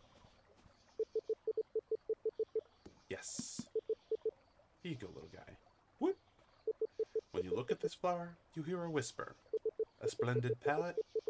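Short beeping blips chatter quickly as dialogue text types out.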